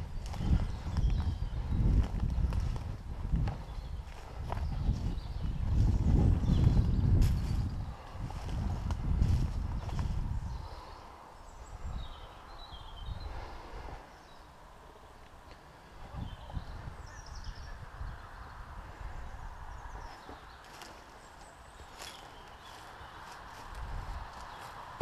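Footsteps crunch through dry leaves and twigs close by.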